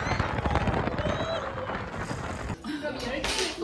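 A roller coaster rumbles along its track.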